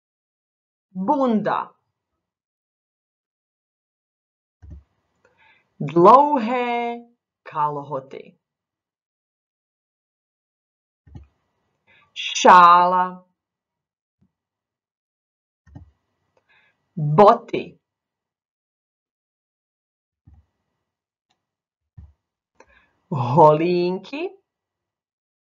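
A young woman speaks slowly and clearly into a microphone, in short phrases with pauses.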